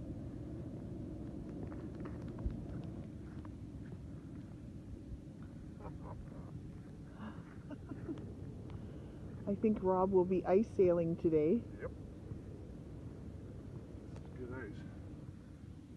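Wind rumbles softly outdoors.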